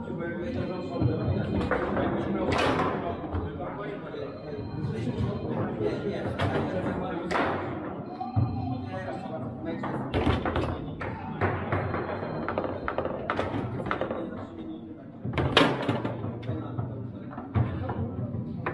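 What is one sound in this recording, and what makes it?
Foosball rods clack and rattle as they spin and slide.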